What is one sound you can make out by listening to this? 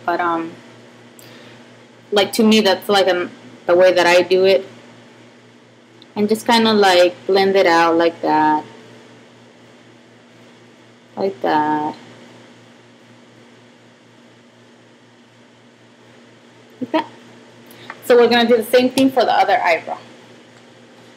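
A young woman talks calmly close to the microphone, in short bursts with pauses.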